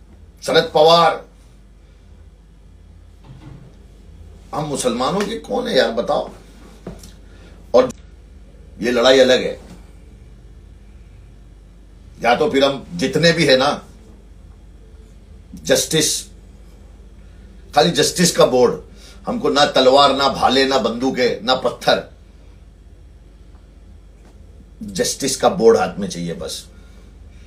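A man speaks with animation close to a microphone, in bursts with pauses.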